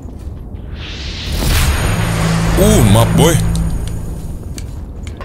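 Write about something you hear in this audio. A magical shimmering whoosh swells and fades.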